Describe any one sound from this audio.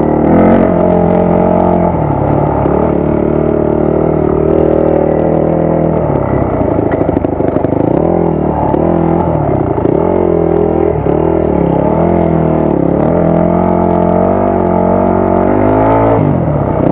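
A dirt bike engine roars close by, its pitch rising and falling as the throttle changes.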